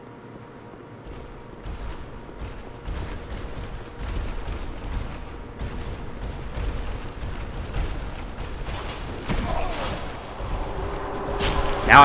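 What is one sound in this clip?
Heavy armoured footsteps run quickly over stone.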